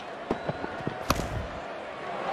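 A bat hits a ball with a sharp knock.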